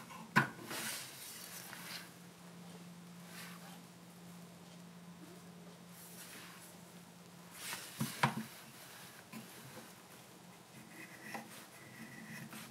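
A knife shaves and scrapes wood in short strokes.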